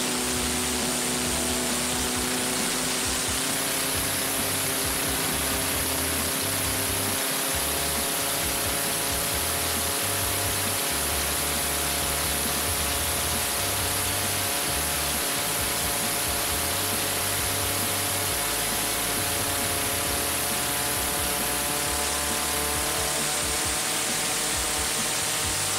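A powerboat engine roars loudly at high speed.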